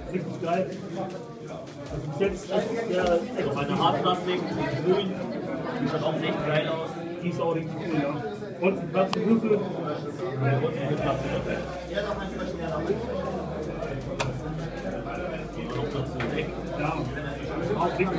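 A second young man talks and comments close by.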